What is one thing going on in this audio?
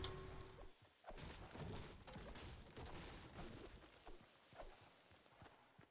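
A pickaxe strikes a tree trunk with hard wooden thuds.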